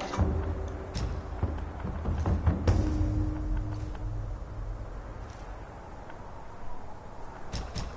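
Soft menu clicks tick as a selection moves through a list.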